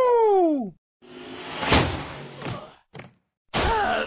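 A cartoon car crashes with a loud bang.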